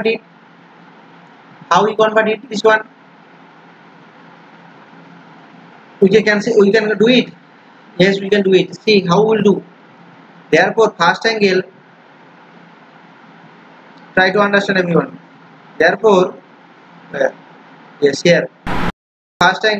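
A young man explains calmly into a close microphone, in short bursts with pauses.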